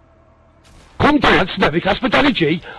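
A man speaks loudly and with excitement into a close microphone.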